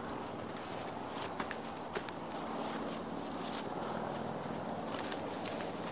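Footsteps rustle through dry leaves and undergrowth.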